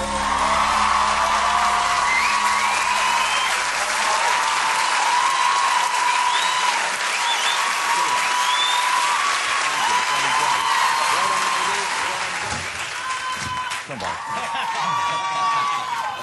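A group of men sing a pop song together into microphones.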